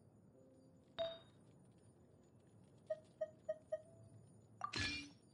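Short bright menu chimes ring out one after another.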